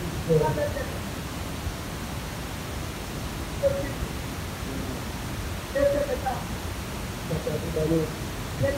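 A woman preaches with passion into a microphone, her voice loud through loudspeakers in an echoing room.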